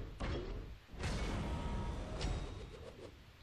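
A game plays a shimmering magical sound effect.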